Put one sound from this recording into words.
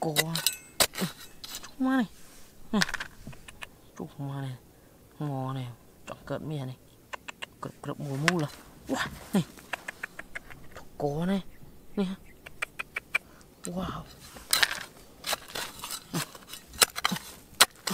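A metal trowel scrapes and digs into dry, gravelly soil.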